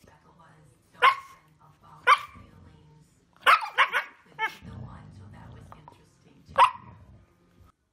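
A dog yowls and howls in loud short bursts.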